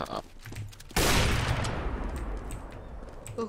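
A rifle fires a single loud shot that rings out and fades.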